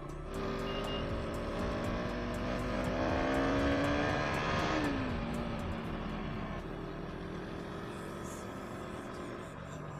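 A motorcycle engine revs up, then drops in pitch as the rider eases off.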